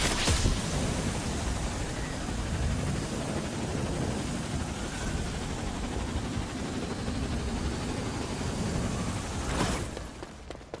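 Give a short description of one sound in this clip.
A hoverboard hums and whooshes along at speed.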